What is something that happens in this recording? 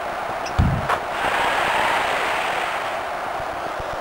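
A crowd cheers loudly for a moment.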